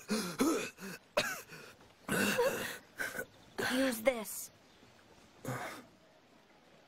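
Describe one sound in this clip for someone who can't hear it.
A young man sobs loudly close by.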